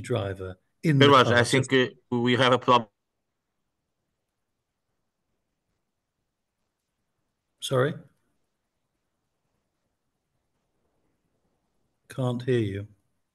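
An elderly man speaks calmly over an online call, with long pauses.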